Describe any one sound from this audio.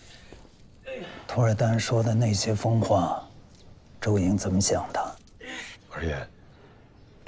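A middle-aged man speaks in a low, serious voice.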